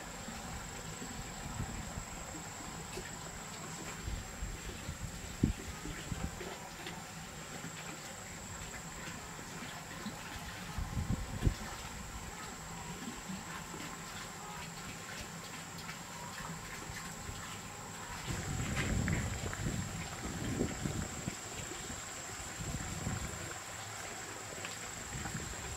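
Wind gusts softly outdoors.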